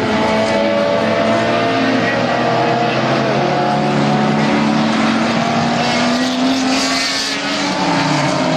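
Racing cars roar along a track in the distance, engines droning and shifting pitch.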